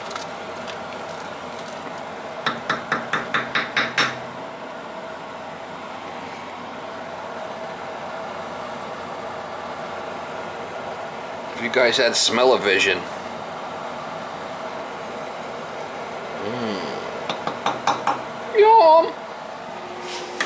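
Chili bubbles as it simmers in a large pot.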